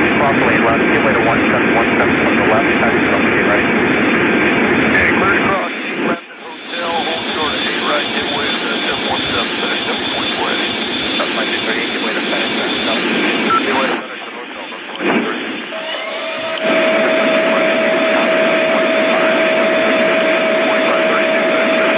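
A small jet engine roars in flight.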